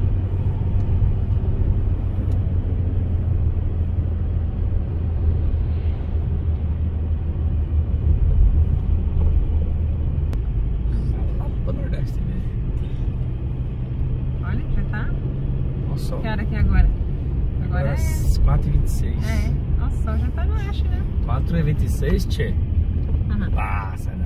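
A car engine hums steadily with a low road rumble from inside the car.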